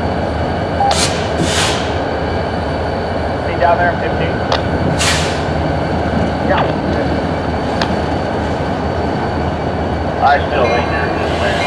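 Metal couplings clank and knock as the cars move.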